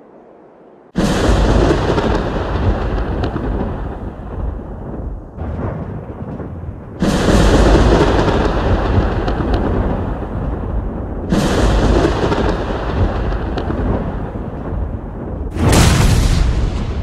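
Thunder cracks and rumbles loudly, again and again.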